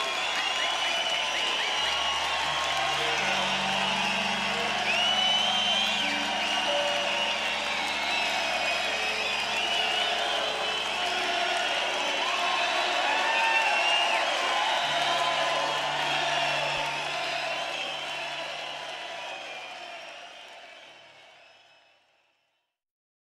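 A large crowd cheers and whistles in an open stadium, then slowly fades away.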